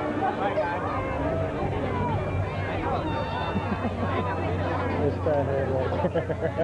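A crowd of adults chatters outdoors, close by.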